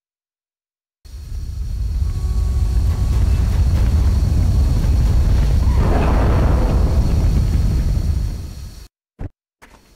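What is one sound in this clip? A craft's engines roar with a deep, steady rumble.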